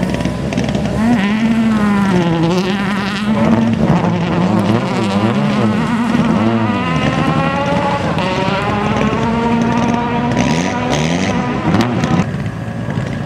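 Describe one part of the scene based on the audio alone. A rally car engine roars, revving up and down as the car races past.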